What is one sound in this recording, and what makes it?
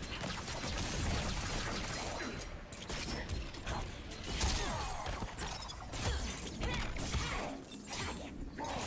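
Icy magic crackles and whooshes.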